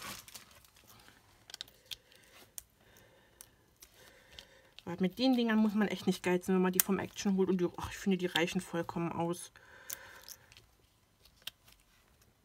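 Paper rustles and scrapes as hands move it around.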